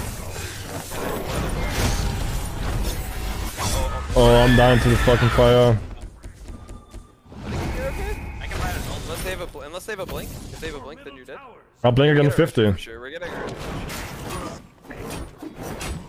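Game spells whoosh and blast in quick bursts.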